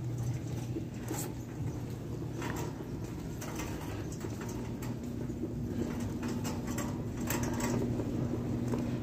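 A shopping cart's wheels rattle and rumble steadily across a hard floor.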